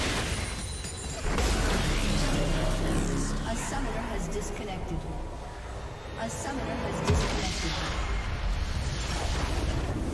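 Game spell effects crackle and boom.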